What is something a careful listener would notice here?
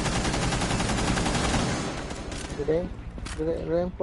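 Rapid gunfire cracks close by.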